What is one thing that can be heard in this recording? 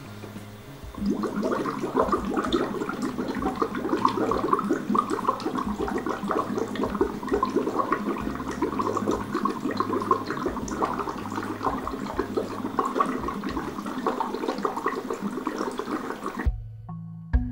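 Air bubbles noisily through a straw into a glass of water.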